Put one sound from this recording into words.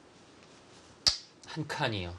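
A game stone clicks down onto a wooden board.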